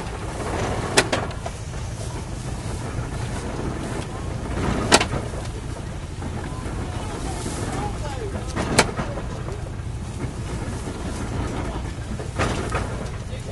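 Sharp metallic clanks ring out from a baling machine every few seconds.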